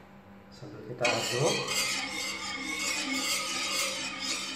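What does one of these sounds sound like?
A hand scrubs and rubs the inside of a metal pan.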